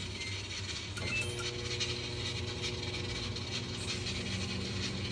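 A microwave oven starts and hums steadily.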